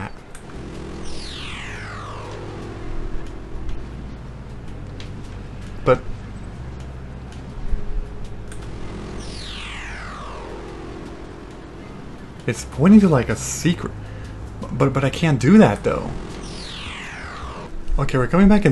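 Electronic glitchy swooshes sweep downward in pitch.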